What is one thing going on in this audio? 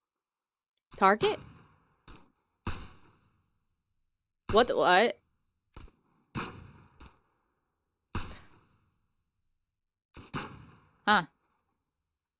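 Gunshots crack one at a time with a short ring after each.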